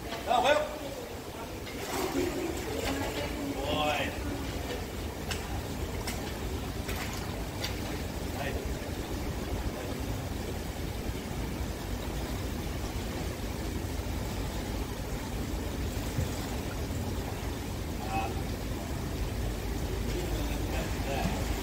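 Water splashes and sloshes in a pool.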